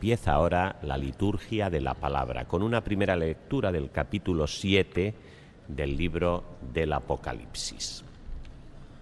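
A man speaks steadily into a microphone, echoing in a large hall.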